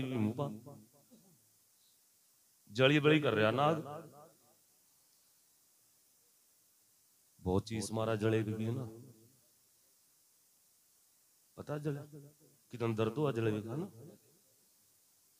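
A man sings loudly into a microphone in short phrases with pauses between them.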